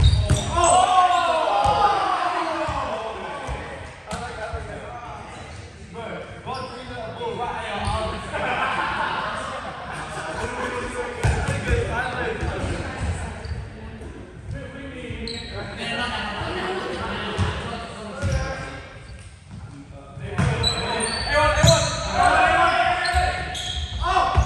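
A volleyball thuds off hands and arms.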